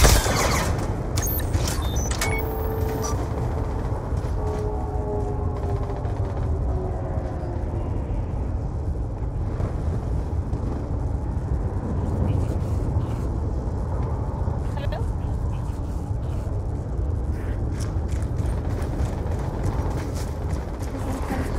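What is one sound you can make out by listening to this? Wind blows in a low, steady rumble outdoors.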